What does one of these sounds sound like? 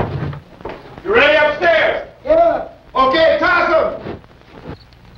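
A man shouts loudly and sharply, close by.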